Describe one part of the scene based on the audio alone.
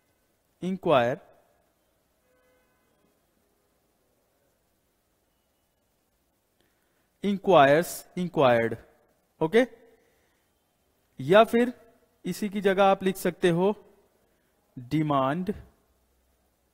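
A young man speaks calmly into a close microphone, in short phrases with pauses.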